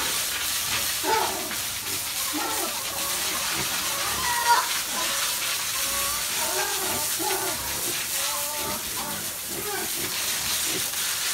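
Pigs grunt and squeal nearby.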